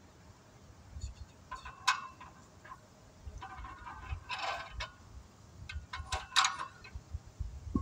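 A metal exercise machine squeaks and clanks as it is worked.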